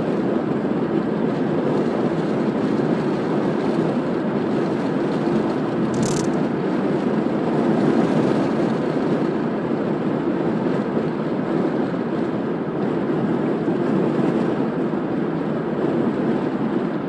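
A car's engine hums steadily and its tyres roll on smooth asphalt from inside the car.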